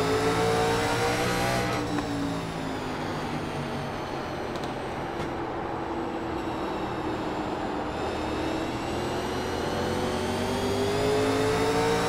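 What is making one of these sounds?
A race car engine roars, its pitch dropping as it slows and then rising again as it speeds up.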